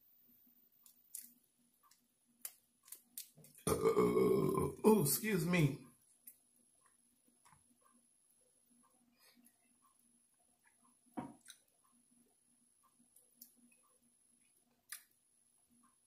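A man chews and smacks food close to the microphone.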